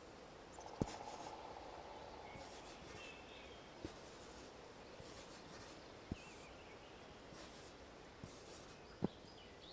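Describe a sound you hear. A pencil scratches quickly across paper in short strokes.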